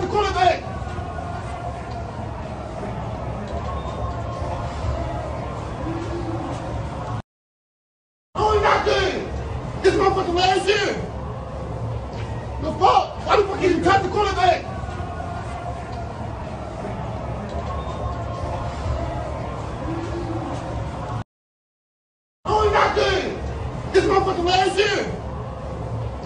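Men shout and cheer nearby in an echoing hallway.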